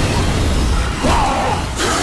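A heavy blow lands with a wet thud.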